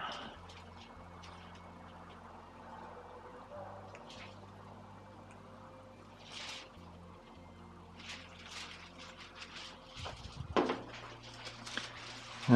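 Small plastic parts click and rub together in a person's hands, close by.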